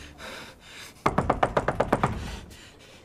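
A young man knocks on a wooden door.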